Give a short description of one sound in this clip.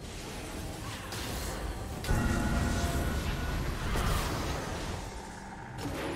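Fantasy battle effects whoosh and crash in a busy fight.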